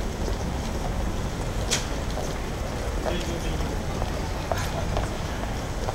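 Footsteps tap on pavement as people walk past.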